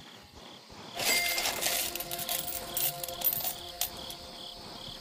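A bright coin chime rings out.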